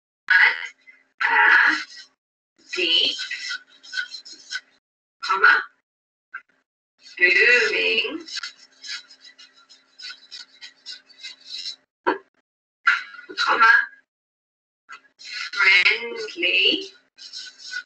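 A marker squeaks and taps on paper.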